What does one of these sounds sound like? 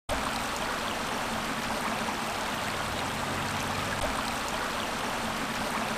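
A river flows gently over stones.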